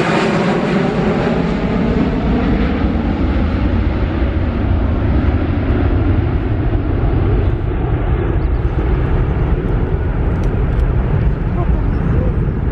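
A deep rumble of jet engines grows and lingers as the airliner flies away.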